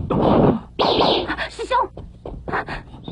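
A young woman exclaims in surprise close by.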